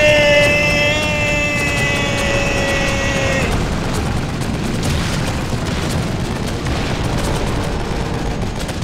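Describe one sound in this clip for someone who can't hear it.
Heavy rumbling crashes roll on and on.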